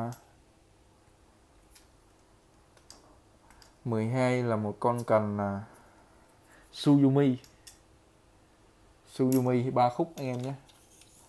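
Fishing rods click and knock together softly as they are handled.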